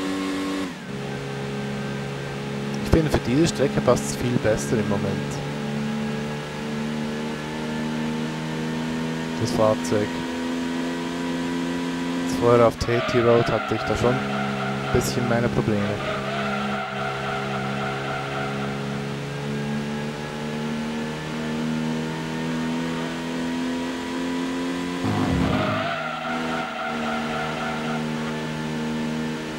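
A racing car engine roars steadily at high revs, its pitch rising gradually.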